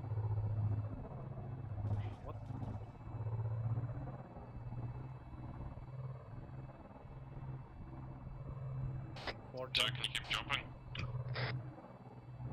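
A spacecraft engine hums with a low, steady drone.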